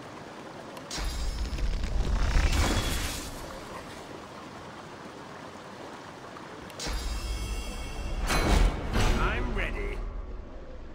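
A magic blast bursts with a loud whoosh.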